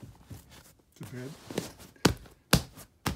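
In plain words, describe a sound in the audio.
A hand rubs against a leather cushion.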